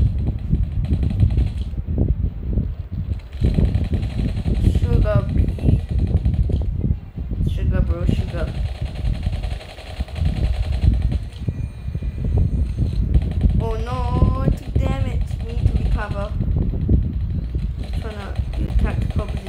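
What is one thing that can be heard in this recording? A gun fires in rapid, booming bursts.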